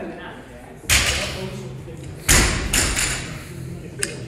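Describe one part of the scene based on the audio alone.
A loaded barbell thuds and clanks on the floor.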